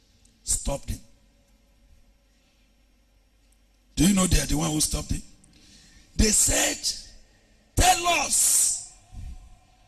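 A man speaks with animation into a microphone, in bursts with pauses.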